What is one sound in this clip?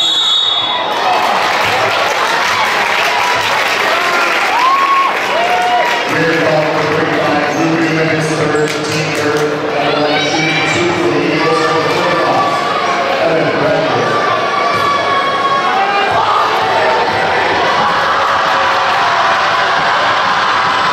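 A large crowd chatters and cheers in an echoing gym.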